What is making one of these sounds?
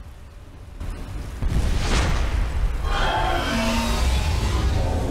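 Fire bursts and roars in a blast of flame.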